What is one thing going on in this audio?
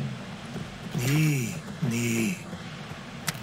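A big cat snarls and growls.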